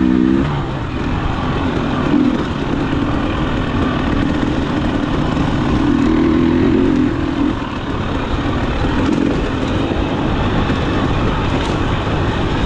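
A dirt bike engine roars and revs steadily close by.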